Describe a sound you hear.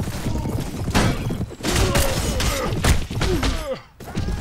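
Men cry out in a brief melee.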